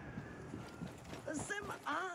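Footsteps run on a dirt path.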